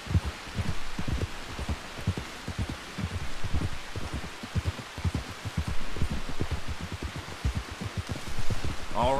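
Horse hooves thud steadily on a dirt trail.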